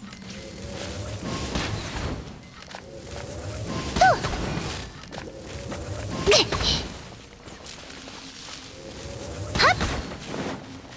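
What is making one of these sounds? An arrow whooshes from a bow.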